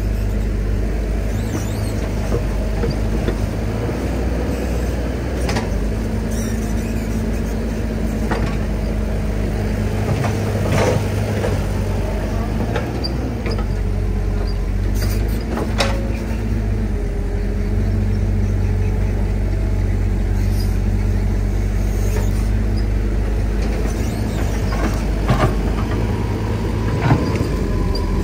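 A diesel excavator engine rumbles and hums steadily close by.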